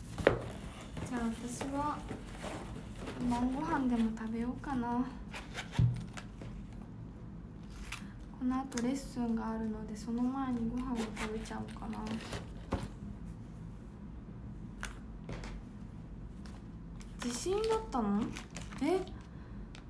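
A young woman speaks softly and close by.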